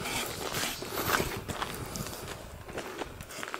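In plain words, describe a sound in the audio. A hand tool scrapes a horse's hoof.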